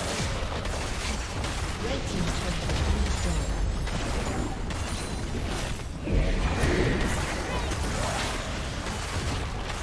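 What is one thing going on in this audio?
Game spell blasts and hits crackle in a busy fight.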